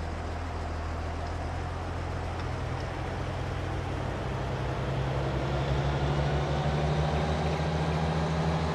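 A truck's diesel engine hums steadily and rises in pitch as it speeds up.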